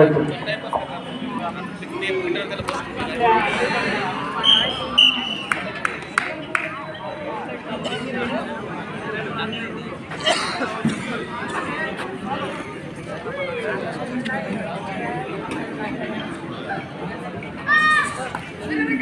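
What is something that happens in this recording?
A crowd of young men and boys shouts and chatters outdoors.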